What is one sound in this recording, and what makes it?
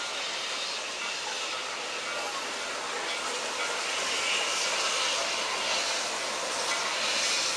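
A steam locomotive chugs steadily in the distance.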